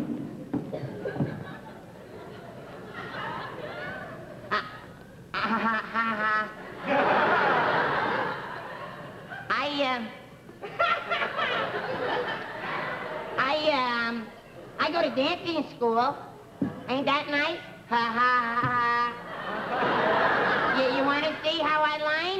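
A young man answers loudly.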